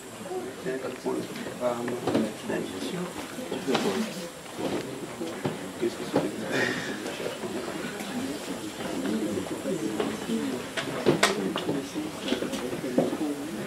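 A man speaks with animation into a microphone in a room with some echo.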